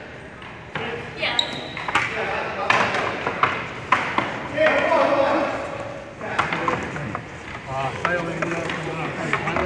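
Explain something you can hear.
Hockey sticks clack on a hard floor.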